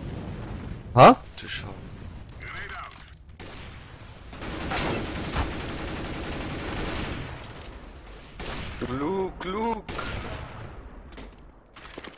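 Gunshots crack.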